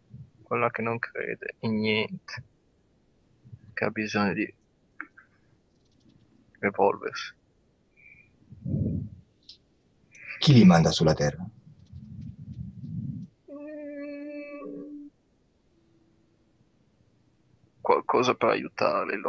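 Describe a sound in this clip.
A middle-aged man speaks calmly over an online call, pausing between phrases.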